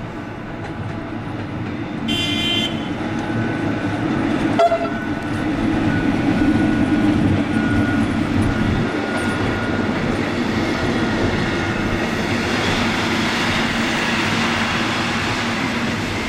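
Train wheels rumble and clatter over the rails.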